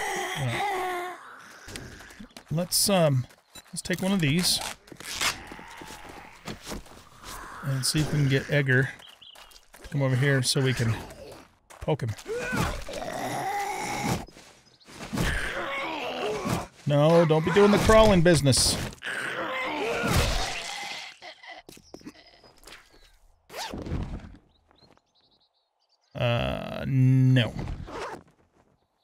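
An elderly man talks with animation into a close microphone.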